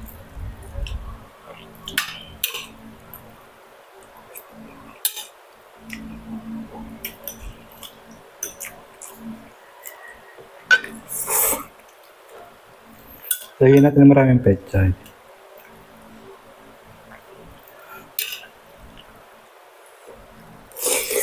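A fork and spoon clink against a plate.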